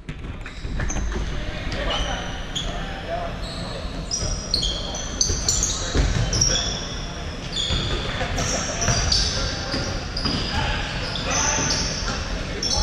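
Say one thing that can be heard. Sneakers squeak sharply and often on a hard court in a large echoing hall.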